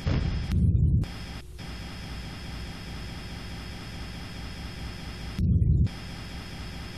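A deep explosion booms in short bursts.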